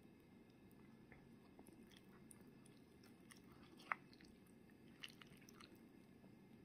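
A metal spoon clinks and scrapes against a plastic cup.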